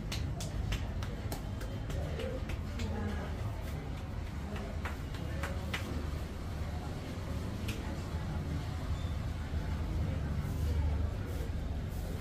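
Hands tap and slap rhythmically on a man's head.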